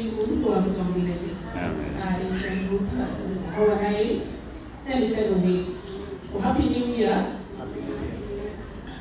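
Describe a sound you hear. A woman speaks with animation into a microphone over loudspeakers in an echoing hall.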